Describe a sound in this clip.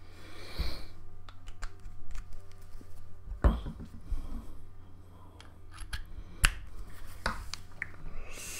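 A small device clicks and taps as it is handled.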